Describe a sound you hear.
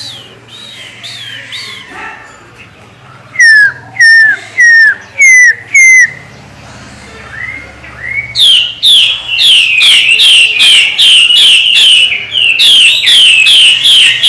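A caged songbird sings loud, repeated whistling calls close by.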